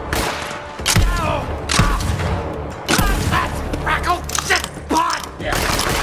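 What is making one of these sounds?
A shotgun fires loud, booming blasts several times.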